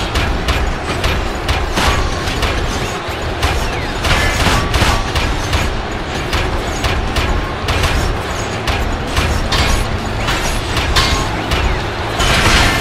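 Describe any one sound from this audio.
A crowd cheers and roars throughout.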